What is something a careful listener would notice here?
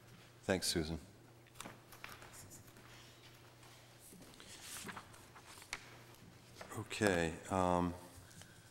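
A middle-aged man speaks through a microphone.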